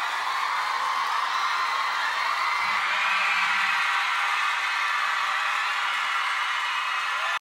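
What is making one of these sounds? Young men sing into headset microphones.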